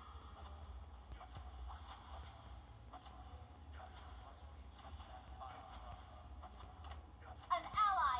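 Sword strikes and magic blasts clash in a game battle.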